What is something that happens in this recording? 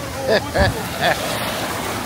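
Small waves wash over the shallows.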